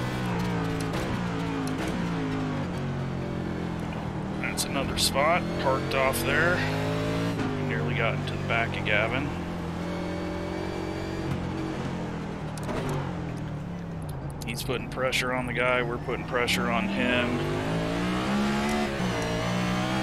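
A racing car engine roars, rising and falling in pitch as it speeds up and shifts gears.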